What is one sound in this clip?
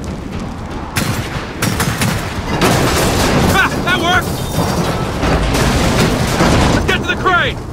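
Debris clatters and crashes around.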